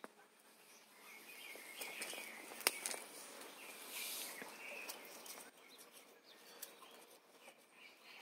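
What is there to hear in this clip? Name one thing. Leaves rustle close by as plants are brushed aside.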